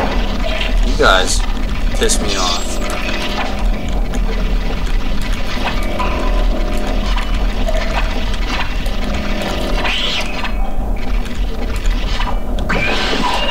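Alien creatures shriek and screech.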